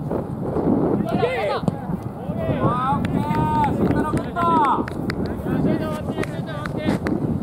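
Young players shout to each other in the distance.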